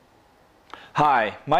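A man speaks calmly to a microphone close by.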